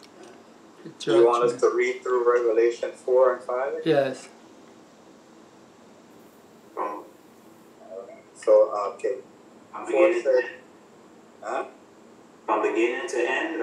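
An elderly man speaks calmly and close to a microphone, with pauses.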